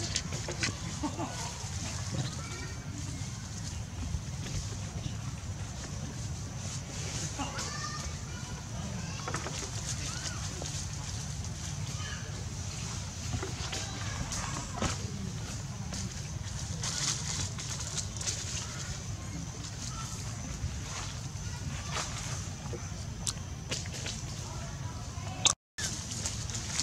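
Dry leaves rustle and crackle as monkeys move about.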